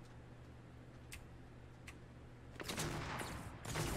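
Running footsteps thud on wooden planks.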